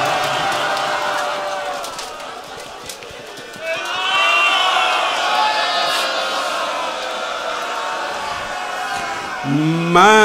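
A middle-aged man sings a mournful chant into a microphone.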